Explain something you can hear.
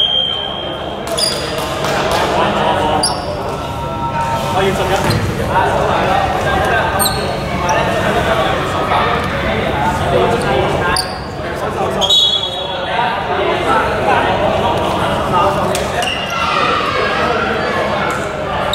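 Young men chat and call out to each other in a large echoing hall.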